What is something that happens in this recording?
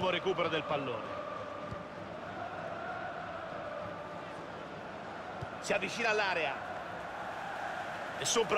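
A large stadium crowd murmurs and hums steadily.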